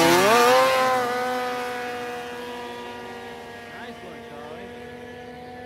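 A snowmobile engine fades into the distance.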